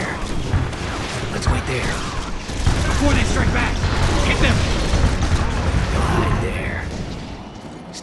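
Gunfire and explosions boom in a game battle.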